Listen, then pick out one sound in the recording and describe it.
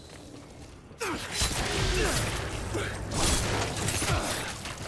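A violent struggle erupts with thuds and crashes.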